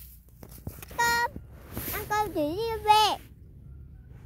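A young child talks in a high, sing-song voice close by.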